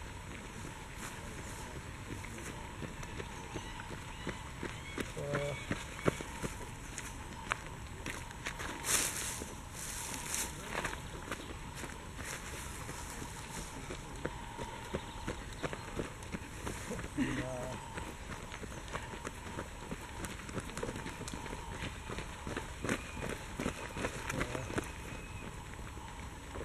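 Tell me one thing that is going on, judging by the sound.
Runners' footsteps crunch on leaves and dirt as they pass close by.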